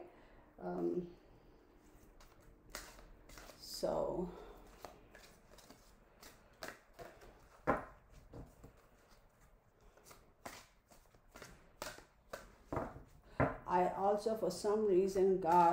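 Playing cards shuffle and flick with soft slaps.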